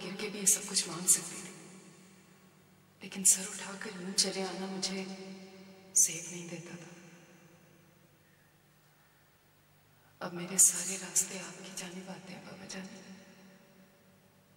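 An elderly woman reads out slowly and sorrowfully, close by.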